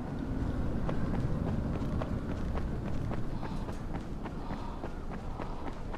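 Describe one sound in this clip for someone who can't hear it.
Footsteps thud quickly on a hard rooftop.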